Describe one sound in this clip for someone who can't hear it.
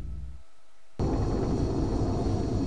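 A jet engine roars.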